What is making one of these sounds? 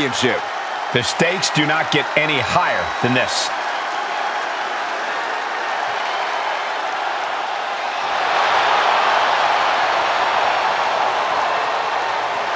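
A large crowd cheers and roars in a big arena, swelling louder.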